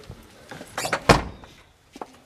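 A car door thumps shut.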